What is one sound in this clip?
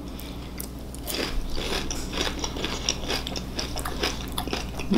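A young man chews crunchy food close by.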